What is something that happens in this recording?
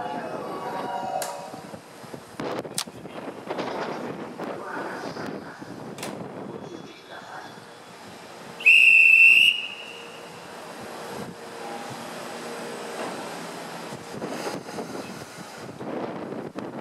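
An electric train hums while standing at a platform.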